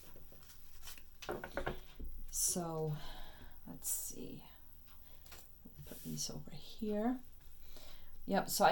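A card is laid down on a wooden table with a soft tap.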